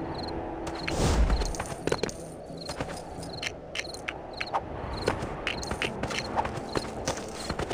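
Small coins clink quickly as they are picked up.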